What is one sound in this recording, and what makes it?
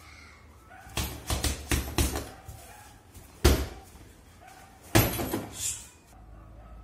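Fists thump hard against a heavy punching bag.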